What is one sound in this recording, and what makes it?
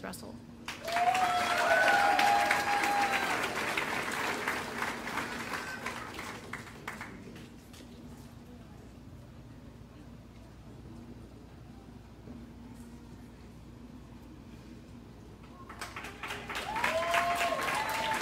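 An audience whoops loudly.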